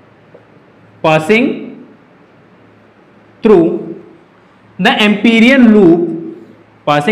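A man speaks slowly and clearly, in short bursts, close by.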